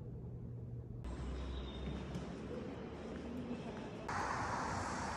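Sandals slap on a hard floor.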